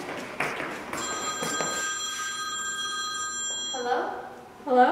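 A phone rings with a steady electronic tone.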